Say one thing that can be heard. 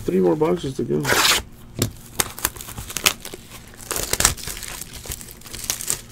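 A plastic wrapper crinkles and rustles as it is handled.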